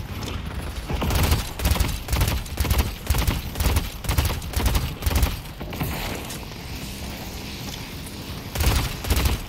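Gunshots fire in rapid bursts with heavy booms.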